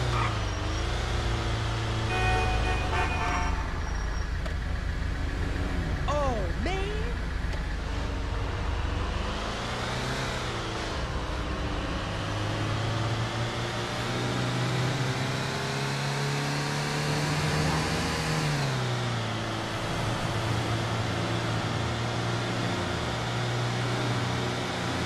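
A van engine hums steadily, rising and falling in pitch as it speeds up and slows down.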